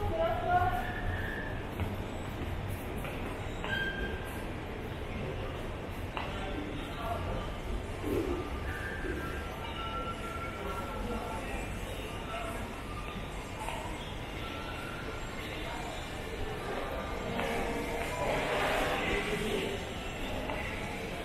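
Distant voices murmur and echo through a large hall.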